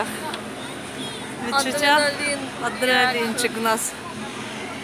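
A young woman talks and laughs with excitement close by.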